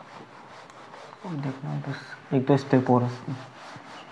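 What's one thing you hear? A board eraser rubs across a whiteboard.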